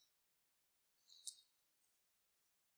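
A plastic bag crinkles softly under someone's fingers.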